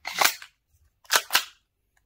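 A pistol's slide clacks as it is pulled back.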